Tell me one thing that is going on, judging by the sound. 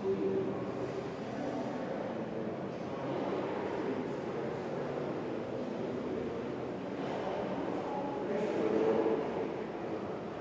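An elderly man talks calmly at a distance in a large echoing hall.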